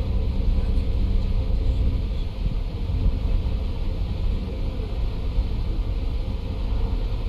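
A bus engine hums steadily while driving at speed.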